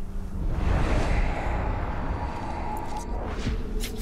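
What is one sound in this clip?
A whooshing rush swells and fades.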